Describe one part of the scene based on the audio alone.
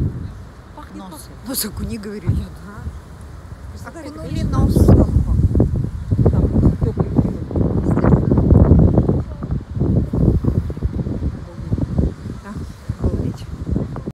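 A middle-aged woman talks calmly close to the microphone.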